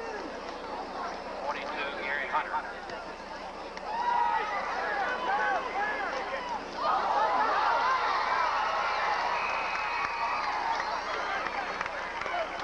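A large crowd cheers and shouts outdoors, rising loudly at times.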